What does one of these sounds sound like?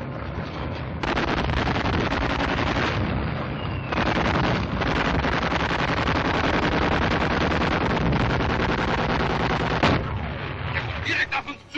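A tank engine rumbles loudly and steadily.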